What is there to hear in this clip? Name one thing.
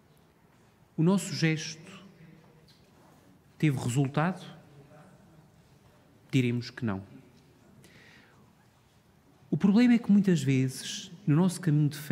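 A man speaks through a microphone in short, slow phrases with pauses between them.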